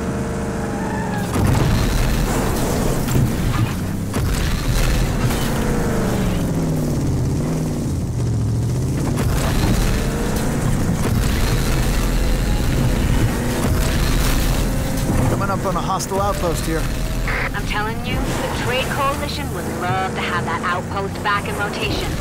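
Tyres crash through bushes and rough ground.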